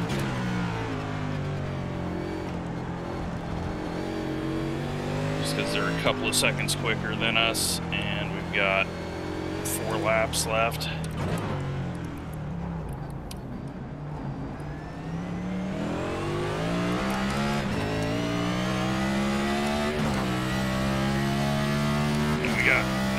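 A race car engine roars steadily, its pitch rising and falling through gear changes.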